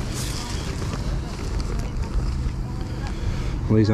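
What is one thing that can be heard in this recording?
A wrapped package crinkles softly as it is handled.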